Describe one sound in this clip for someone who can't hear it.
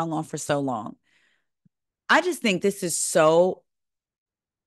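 A woman speaks with animation into a close microphone over an online call.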